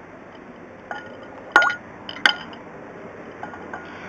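A glass jar clinks against a glass bowl.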